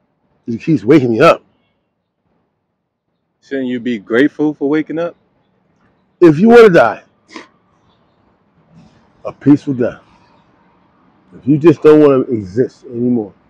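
An elderly man speaks calmly in short bursts, close by.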